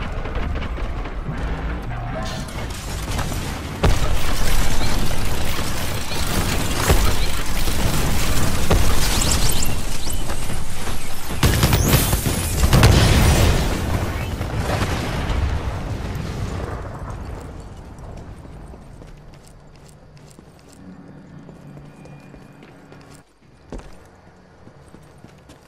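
Footsteps run quickly over grass and metal floors.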